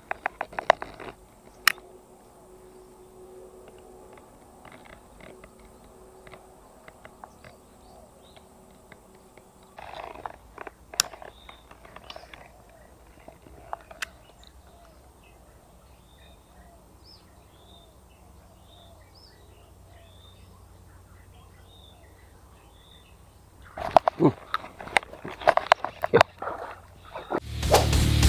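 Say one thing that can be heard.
A baitcasting reel whirs and clicks as line is reeled in.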